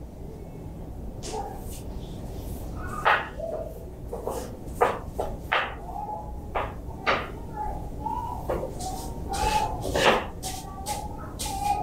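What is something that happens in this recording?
Bare feet pad on a tiled floor.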